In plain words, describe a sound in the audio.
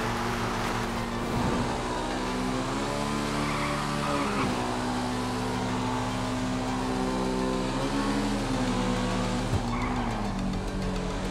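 A motorcycle engine drones steadily, its pitch rising and dropping as it shifts gears.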